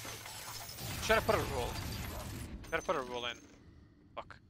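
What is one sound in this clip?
A young man talks into a nearby microphone with animation.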